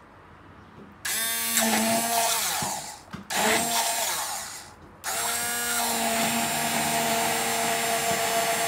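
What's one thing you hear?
An immersion blender whirs loudly in bursts, churning liquid.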